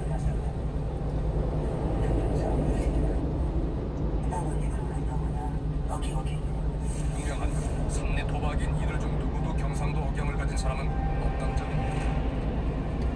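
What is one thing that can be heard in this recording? A car engine hums steadily from inside.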